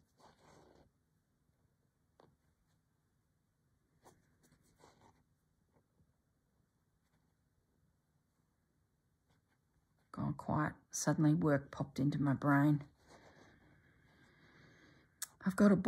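Thread softly rustles as it is pulled through cloth.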